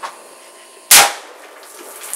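A revolver clicks sharply as its hammer falls.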